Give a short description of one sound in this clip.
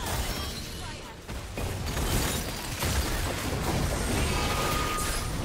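Game spell effects whoosh and crackle in quick bursts.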